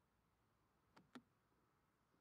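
A vehicle door slams shut.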